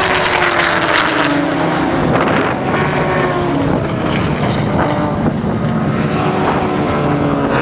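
Engines rev up and down in pitch as cars change gear.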